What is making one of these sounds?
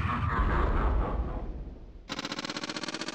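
A pinball game plays a deep rumbling sound effect that fades away.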